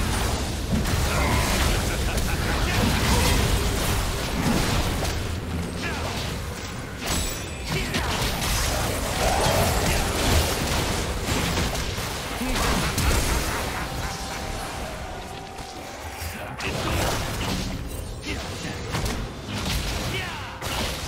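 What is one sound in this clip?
Game spell effects and attack sounds clash and burst.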